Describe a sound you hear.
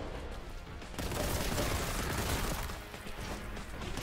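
Gunfire blasts rapidly at close range.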